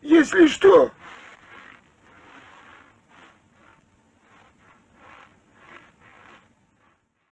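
Footsteps crunch slowly through snow.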